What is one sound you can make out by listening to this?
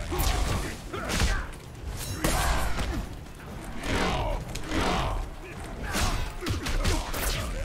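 Punches and kicks land with heavy thuds in a fighting game.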